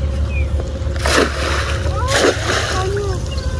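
A cast net splashes into the water.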